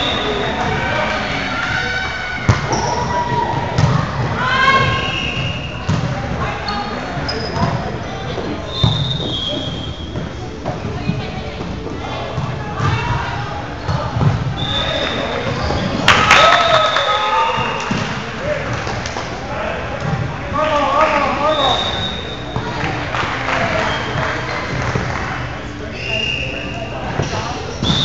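Young men shout and call out to each other across an echoing hall.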